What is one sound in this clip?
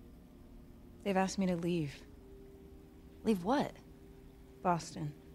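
Another teenage girl answers in a low, calm voice.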